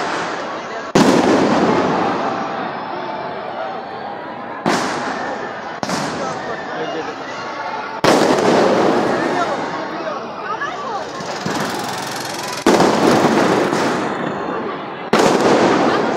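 Fireworks explode with loud booms that echo around.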